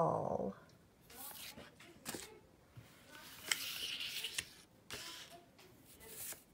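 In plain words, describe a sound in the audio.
Paper cards slide and rustle across a table.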